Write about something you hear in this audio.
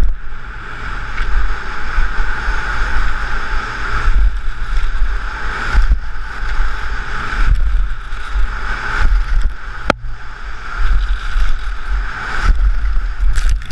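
Wind rushes loudly past a fast-moving skier.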